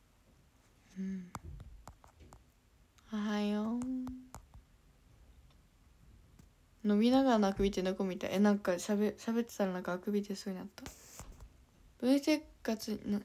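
A young woman talks casually and close to a microphone, with pauses.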